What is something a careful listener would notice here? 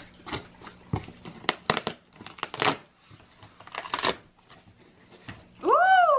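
Packing tape rips off a cardboard box.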